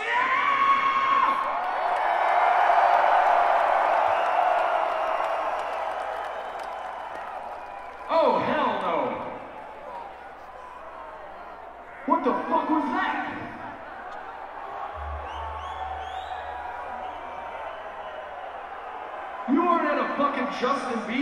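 A man screams harshly into a microphone, heard loudly through loudspeakers in a large echoing space.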